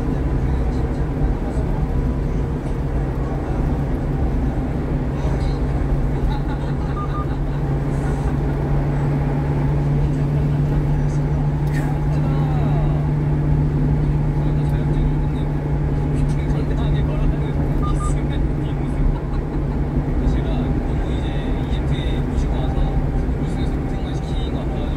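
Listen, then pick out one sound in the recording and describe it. Wind rushes past the moving car.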